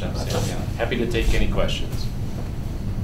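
A man speaks briefly and casually nearby.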